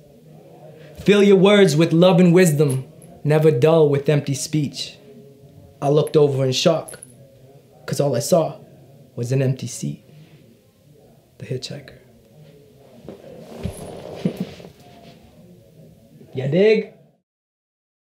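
A man talks calmly and close to a microphone, in short phrases.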